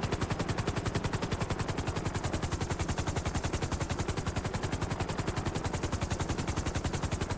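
A helicopter's rotor chops rapidly and steadily.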